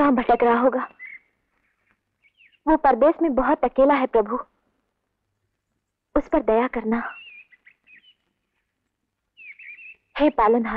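A young woman sings a devotional song with emotion, her voice rising and falling in long phrases.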